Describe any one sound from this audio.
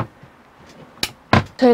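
A cabinet door clicks and thumps as it opens.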